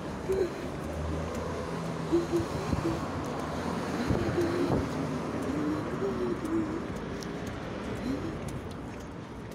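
Traffic hums steadily along a nearby street.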